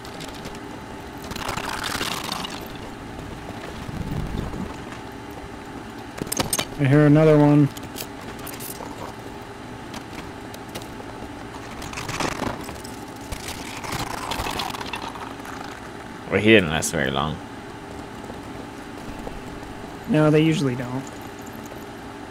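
Footsteps crunch over icy ground.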